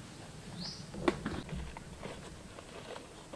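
A plastic container lid clicks.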